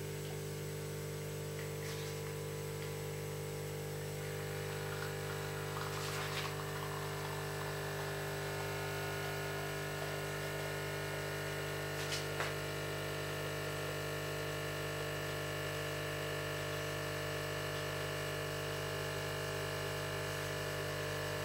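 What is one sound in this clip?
Coffee trickles into a glass.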